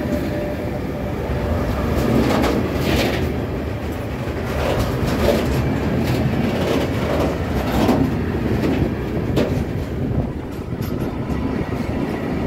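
A freight train rumbles past close by at speed.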